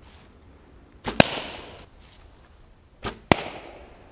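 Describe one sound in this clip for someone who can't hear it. A whip swishes through the air.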